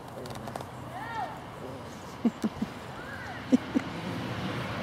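Puppies yelp and whine as they play.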